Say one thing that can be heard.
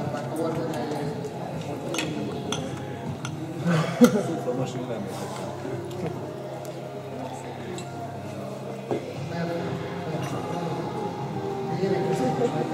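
Many people chatter at once around tables.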